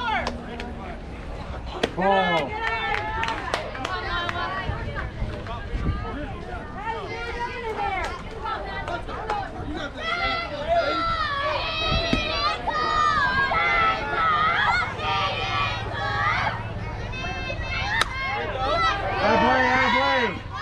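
Young girls shout and cheer close by, outdoors.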